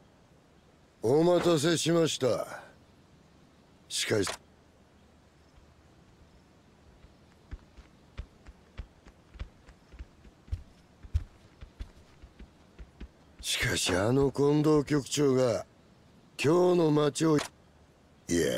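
A middle-aged man speaks calmly and gruffly, close by.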